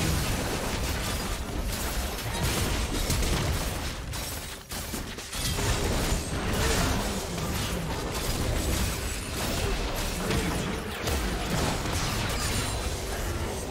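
Spells crackle and explode in a fast fight.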